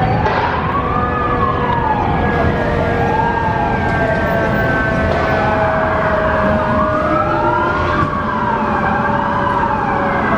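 A fire engine siren wails, rising and falling close by.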